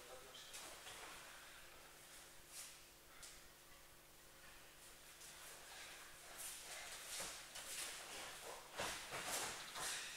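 Two men grapple, their jackets rustling and snapping.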